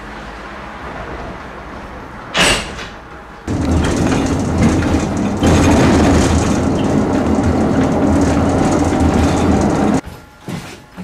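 A tram rumbles and rattles along the tracks.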